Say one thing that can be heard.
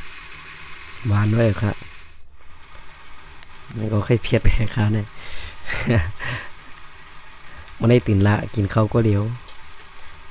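A young man speaks in short bursts close to the microphone.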